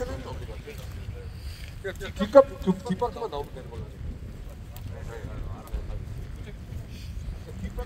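A crowd of men talk and chatter nearby outdoors.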